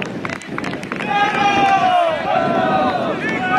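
Young men shout and cheer outdoors.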